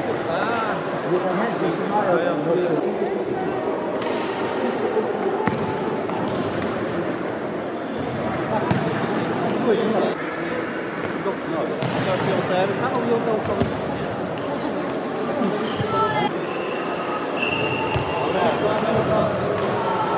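Many voices murmur and echo in a large hall.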